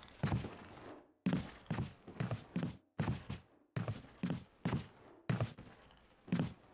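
Heavy footsteps thud steadily on a wooden floor with a slight echo.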